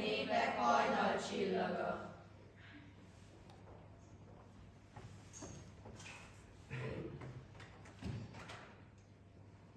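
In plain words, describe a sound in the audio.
A young girl recites through a microphone in an echoing hall.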